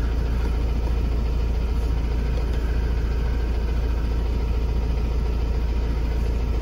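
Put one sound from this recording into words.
A vehicle engine idles with a steady low rumble.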